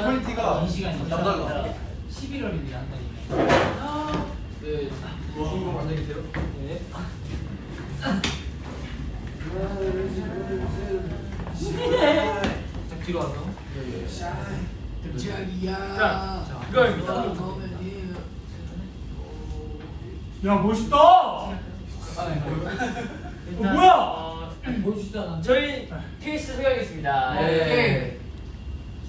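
Several young men talk and laugh together nearby, with animation.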